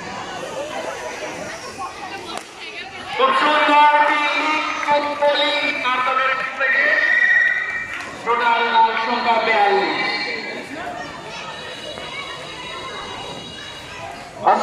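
A crowd of children chatters outdoors in the background.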